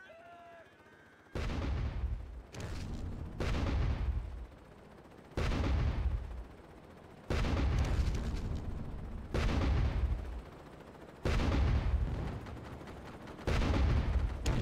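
Footsteps run over grass.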